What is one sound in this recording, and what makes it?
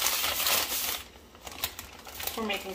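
A hand pats and rubs flour on a wooden board.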